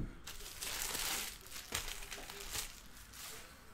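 Trading cards slide and rustle against each other in a hand.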